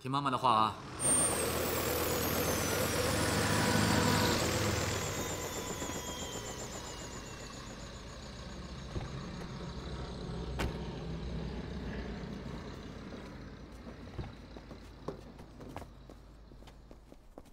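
An aircraft propeller engine roars steadily and slowly winds down.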